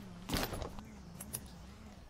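A metal buckle clicks as overall straps are fastened.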